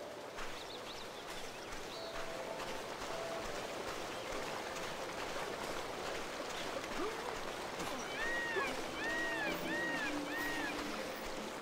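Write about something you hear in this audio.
Light footsteps run along a dirt path.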